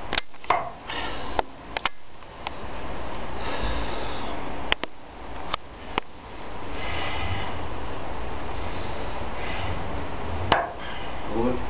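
A hammer knocks nails into a wooden board with sharp taps.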